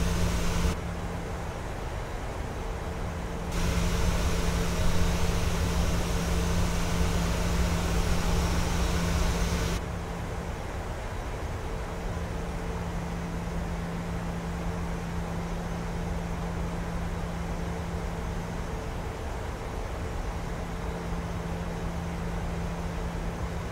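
Jet engines hum steadily from inside a cockpit.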